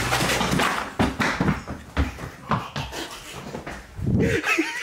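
Footsteps thump on a wooden floor.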